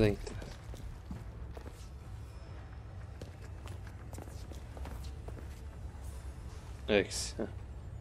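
Footsteps tread slowly on a hard, gritty floor.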